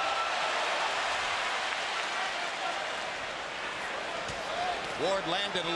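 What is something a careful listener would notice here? A large crowd murmurs and cheers in a big hall.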